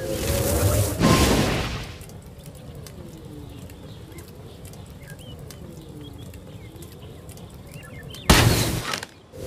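Flaming arrows shoot off with a burst.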